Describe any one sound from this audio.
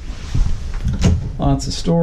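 A cabinet door opens with a soft knock.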